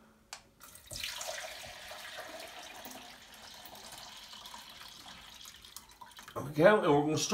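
Liquid pours from a large glass jar into a jug.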